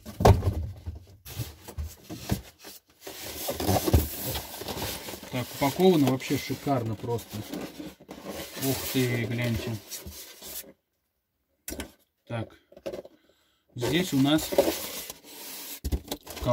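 Foam packing squeaks and rubs as a box is opened.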